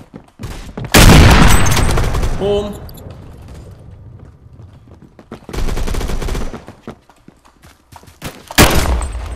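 A rifle fires loud shots, several times.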